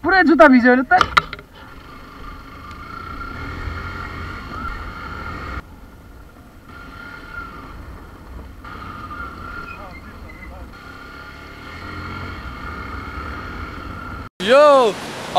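A motorcycle engine rumbles along a rough dirt track.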